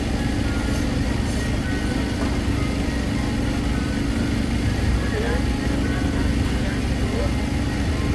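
A crowd of men and women chatters steadily outdoors.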